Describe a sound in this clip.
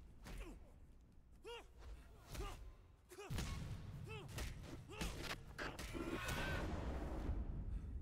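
Boxing gloves land heavy thuds on a body.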